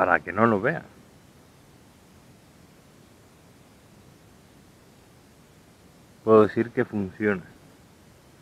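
A man speaks close by in short animated bursts.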